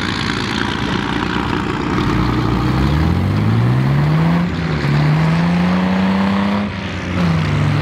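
Heavy tracked vehicle engines rumble and roar nearby.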